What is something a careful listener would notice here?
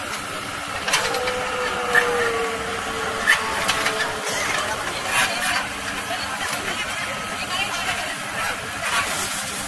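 An excavator bucket scrapes and drops soil.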